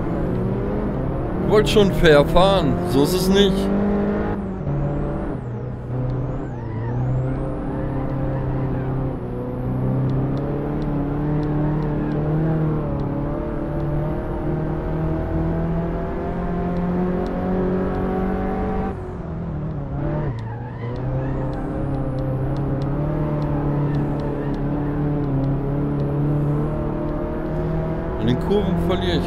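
A small car engine drones and revs up and down through the gears.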